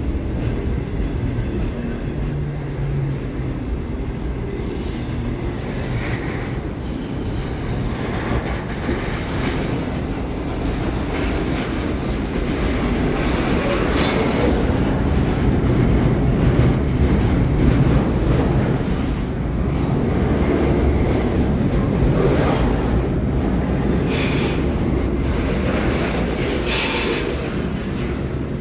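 Train wheels clatter and squeal on the rails.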